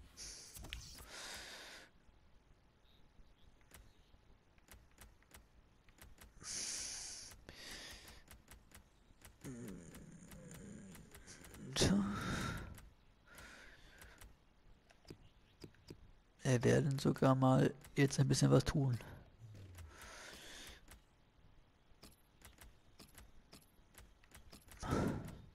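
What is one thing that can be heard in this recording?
Short menu clicks tick as selections change.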